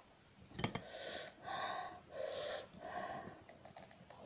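A young woman slurps noodles loudly.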